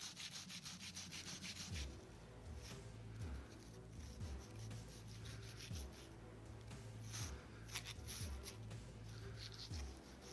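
Metal parts click and rattle in a hand.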